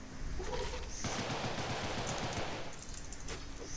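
Rapid gunfire crackles in a burst.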